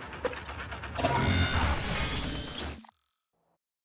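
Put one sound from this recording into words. A loud rushing whoosh swells and then cuts off.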